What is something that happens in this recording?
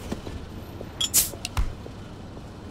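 A glass bottle clinks.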